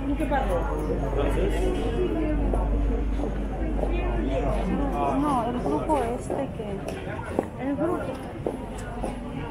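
Footsteps shuffle on pavement.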